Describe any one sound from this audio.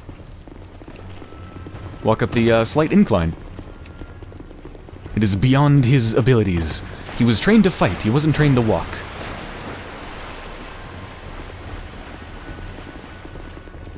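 Armoured footsteps run over stone.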